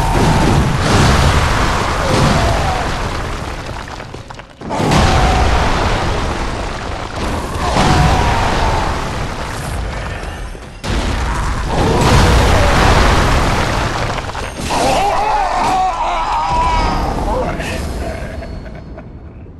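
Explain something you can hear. Heavy blows and slashes clash loudly in a fight.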